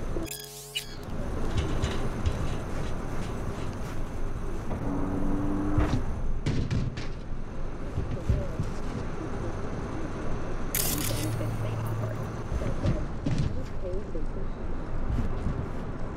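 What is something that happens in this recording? Footsteps thud on a metal grating.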